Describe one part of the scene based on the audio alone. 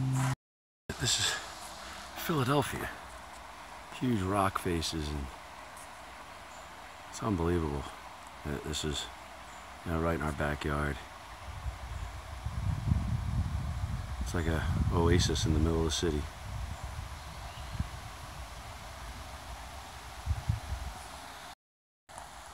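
A shallow stream trickles and babbles over rocks.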